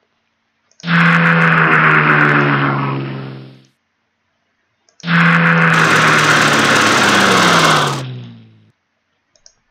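A tank engine rumbles loudly and then fades away.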